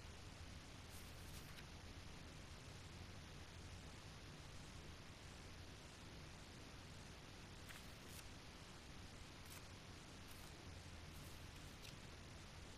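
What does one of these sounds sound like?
Paper rustles softly as a page is handled.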